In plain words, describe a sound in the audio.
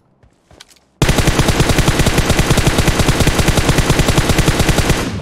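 Rapid bursts of automatic gunfire rattle loudly.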